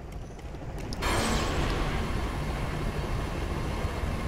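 A powerful energy beam blasts with a loud, steady roar.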